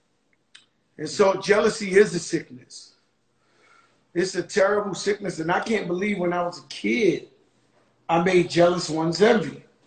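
A man speaks casually and close to a microphone, in short bursts with pauses.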